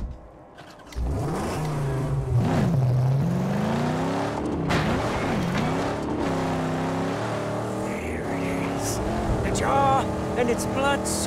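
A car engine starts and revs up and down as it drives off.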